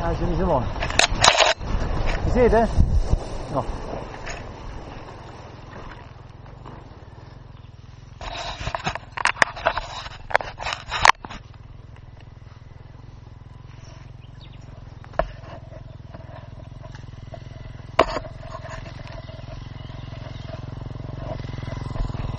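A dirt bike engine idles with a low steady rumble.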